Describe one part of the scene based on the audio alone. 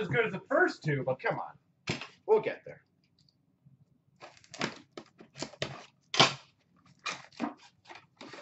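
Hands handle and turn a boxed tin, rustling softly.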